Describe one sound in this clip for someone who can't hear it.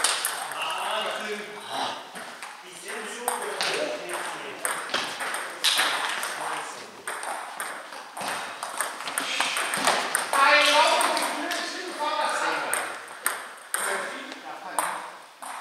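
A table tennis ball clicks against bats and the table in an echoing sports hall.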